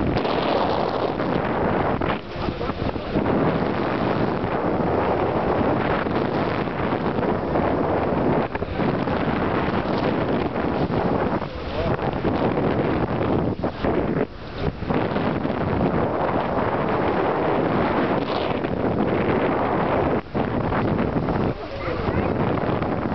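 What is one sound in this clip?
Water rushes and splashes along a moving boat's hull.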